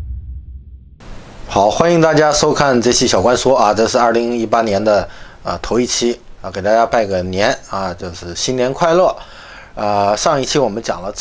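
A middle-aged man speaks calmly and warmly into a close microphone.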